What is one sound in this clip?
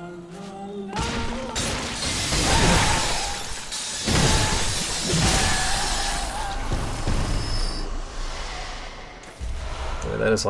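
A saw blade whirs and clashes in a fight.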